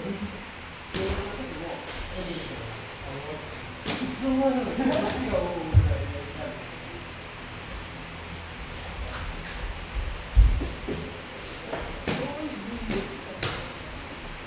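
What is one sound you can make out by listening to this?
Punches smack against padded mitts.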